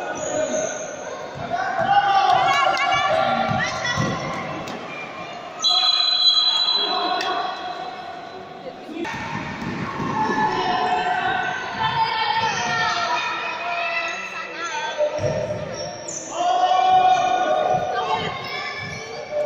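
Young players' voices shout and cheer, echoing in a large hall.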